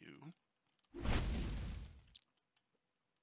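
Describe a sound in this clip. Fire roars up with a low whoosh.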